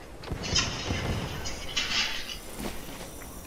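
A bright shimmering chime rings out as items are picked up.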